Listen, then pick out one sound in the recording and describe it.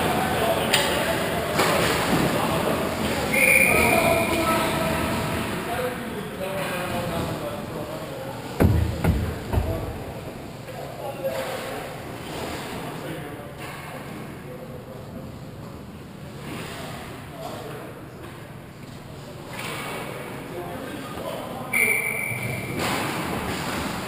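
Hockey sticks clack against the ice and the puck.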